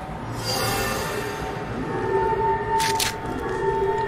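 Metal clicks and clacks as a rifle is reloaded.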